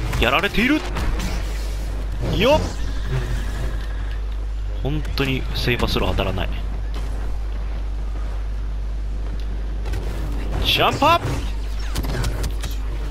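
A lightsaber hums low and steadily.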